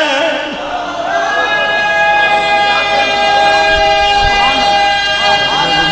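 A crowd of men chants along in unison.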